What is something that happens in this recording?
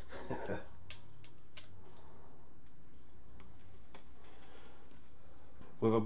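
Metal parts click and clink softly.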